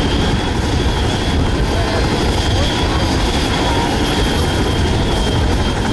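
A helicopter's turbine whines steadily at a high pitch.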